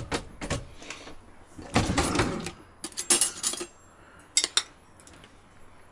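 Cutlery rattles in a drawer.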